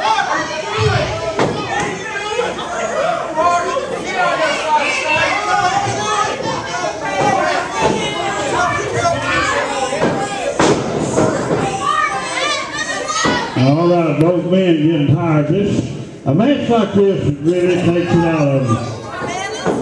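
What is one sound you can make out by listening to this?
Wrestlers thud heavily onto a ring mat.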